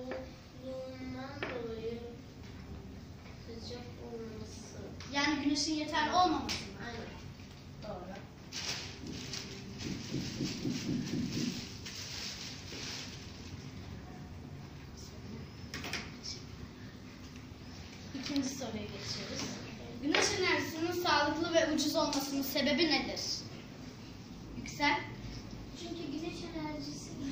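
A young girl speaks nearby, reading out.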